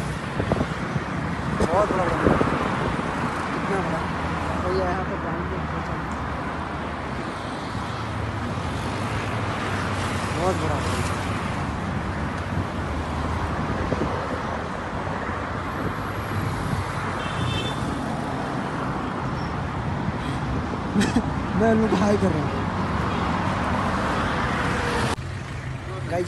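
Traffic roars steadily past on a busy road.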